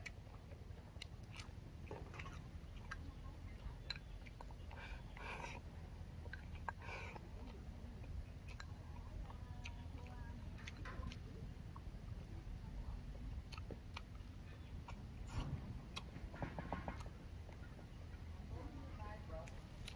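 A young man chews and slurps food loudly up close.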